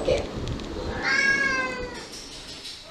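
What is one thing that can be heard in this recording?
A cat meows.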